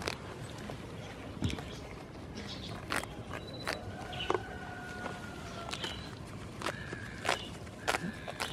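A goat tears and crunches grass close by.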